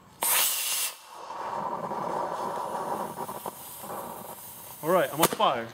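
A rocket whooshes and hisses away through the air.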